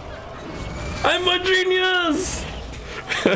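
A young man cheers loudly into a close microphone.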